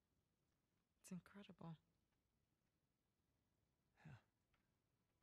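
A young woman speaks softly and playfully, close by.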